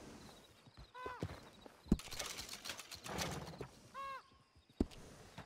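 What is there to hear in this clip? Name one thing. A short bright chime rings out twice.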